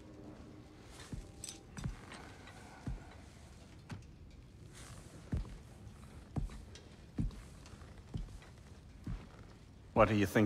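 Heavy footsteps thud slowly on a wooden floor.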